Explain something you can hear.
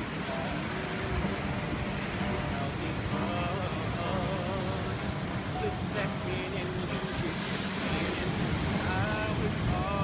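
A young woman sings softly.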